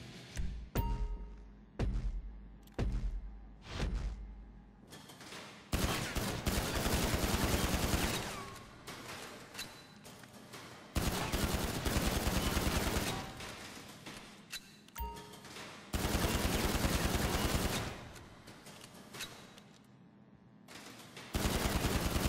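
Pistol shots fire in quick bursts, echoing in an enclosed range.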